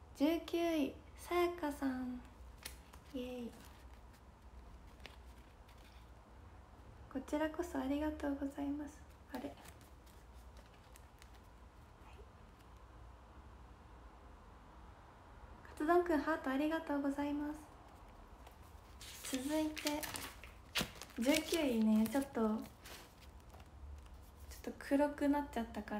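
A young woman talks animatedly, close by.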